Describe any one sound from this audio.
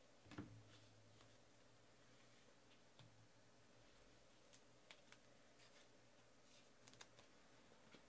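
Cards rustle and tap softly as hands handle them.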